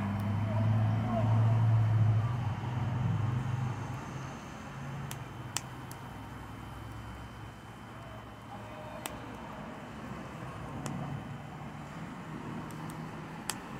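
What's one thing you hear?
A gas fire roars softly.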